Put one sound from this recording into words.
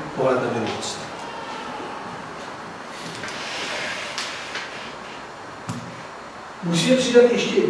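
A man speaks into a microphone in an echoing room, pausing between phrases.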